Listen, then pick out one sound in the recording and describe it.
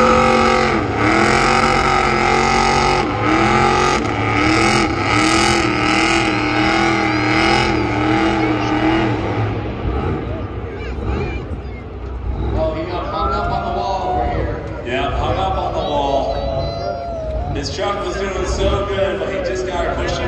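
A car engine roars and revs hard in a large open stadium.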